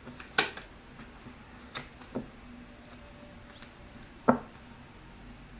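Cards are shuffled with soft riffling and tapping.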